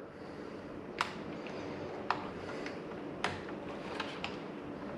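Small plastic connectors click softly as they are handled.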